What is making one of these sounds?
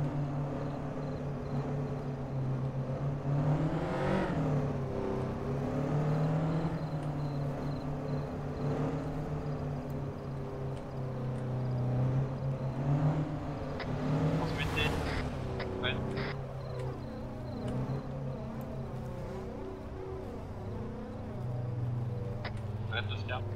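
A sports car engine hums and revs as it drives along.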